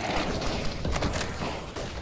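A rifle's bolt clacks as it is handled.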